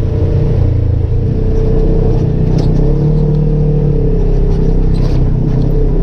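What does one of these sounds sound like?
Brush scrapes against a vehicle's body.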